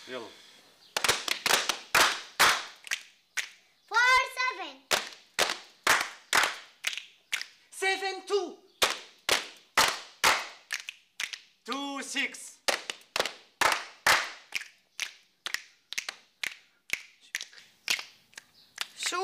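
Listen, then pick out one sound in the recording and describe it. People clap their hands in a steady rhythm.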